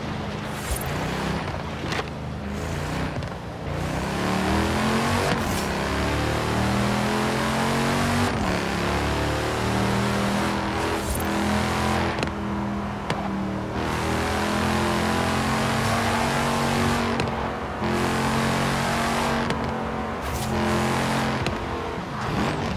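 A car engine roars and revs up through the gears.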